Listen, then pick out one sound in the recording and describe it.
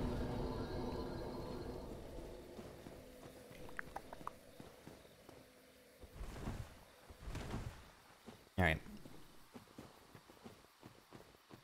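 Armoured footsteps crunch over rubble and earth.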